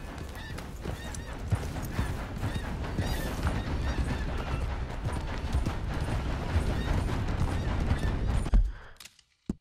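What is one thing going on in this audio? Horse hooves thud steadily on a dirt track.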